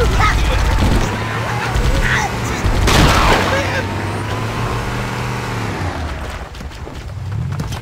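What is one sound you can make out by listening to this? A vehicle engine hums as a jeep drives over rough ground.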